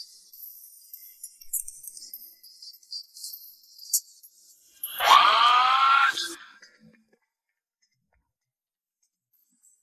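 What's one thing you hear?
Paper rustles as an envelope is opened.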